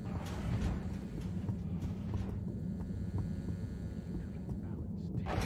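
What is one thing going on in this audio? Footsteps thud at a brisk pace on a hollow metal floor.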